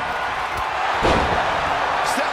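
A heavy body slams onto the mat with a loud thud.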